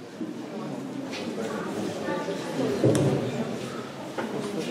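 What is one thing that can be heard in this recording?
A girl speaks quietly into a microphone.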